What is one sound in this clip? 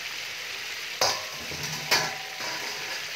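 Metal tongs clank against a steel bowl.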